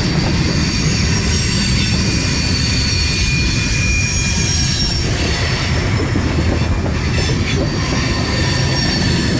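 Train wheels squeal and screech against the rails.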